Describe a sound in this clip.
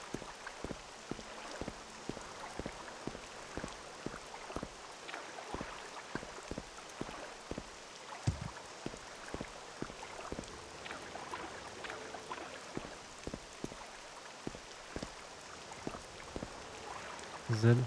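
Footsteps thud steadily through grass.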